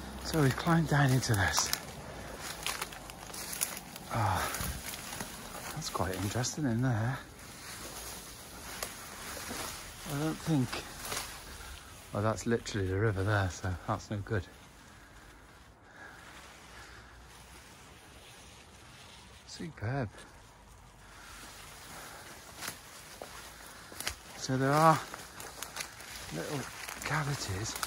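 Leaves and stems rustle as someone pushes through dense undergrowth.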